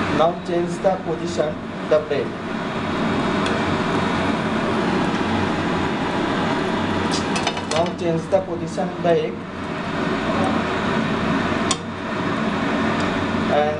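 A metal spatula scrapes against a frying pan.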